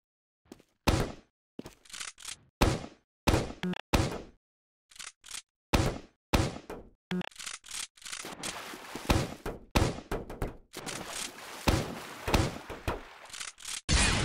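A gun fires sharp, echoing blasts again and again.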